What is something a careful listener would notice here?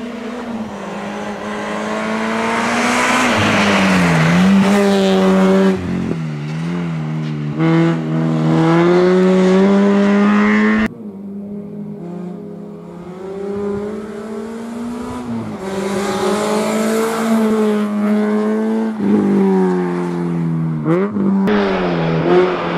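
A rally car engine roars loudly, revving up and down through the gears.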